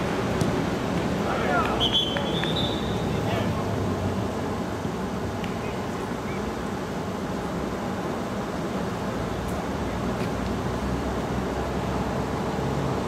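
Spectators chat and murmur close by, outdoors.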